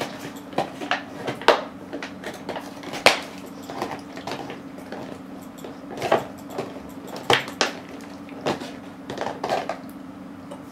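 A dog chews and gnaws noisily on a toy close by.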